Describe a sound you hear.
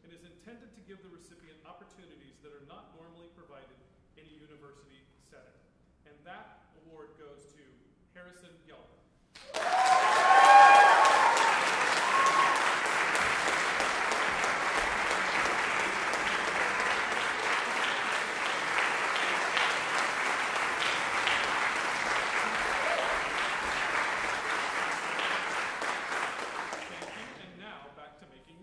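A man speaks calmly at a lectern in a large hall.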